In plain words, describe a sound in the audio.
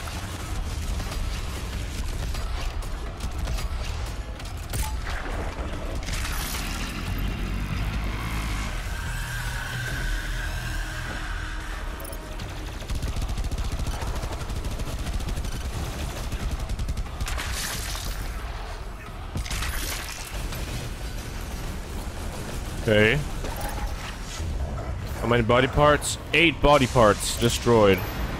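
Heavy gunfire blasts rapidly.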